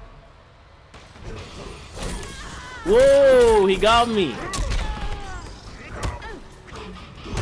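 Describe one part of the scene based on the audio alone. Heavy blows land with thuds and cracks in a fight.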